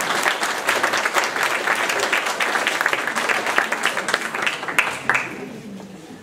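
An audience applauds in a room that echoes.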